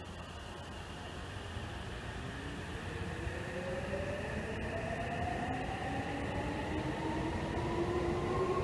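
An electric train pulls out slowly, its motor whine rising in pitch.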